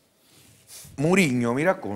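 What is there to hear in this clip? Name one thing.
A younger man speaks with good humour, close to a microphone.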